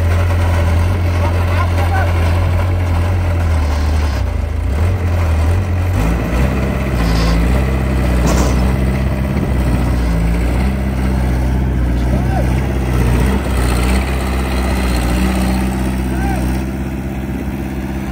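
A heavy excavator engine rumbles steadily nearby.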